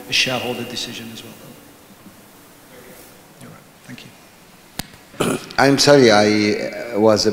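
A middle-aged man speaks calmly through a microphone and loudspeakers.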